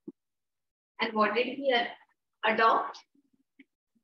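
A woman speaks clearly, close to a microphone, as if teaching.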